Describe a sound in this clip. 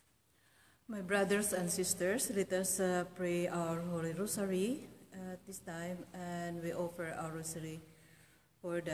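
A middle-aged woman speaks calmly and close to the microphone.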